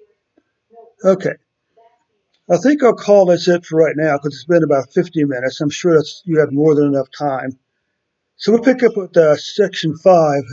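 An older man speaks calmly close to a microphone.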